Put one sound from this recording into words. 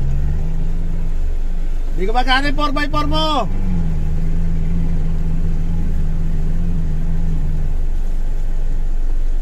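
Water sprays and splashes as an off-road buggy fords a shallow river.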